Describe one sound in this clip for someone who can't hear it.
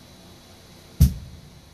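A sharp thump sounds close by as a man reaches down.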